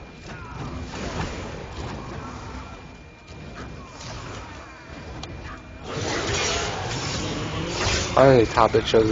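Fiery spell blasts whoosh and crackle in a game battle.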